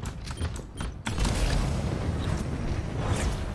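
A powerful thruster roars with a low, rushing rumble.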